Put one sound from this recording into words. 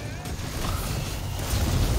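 Metal blades clash and slash.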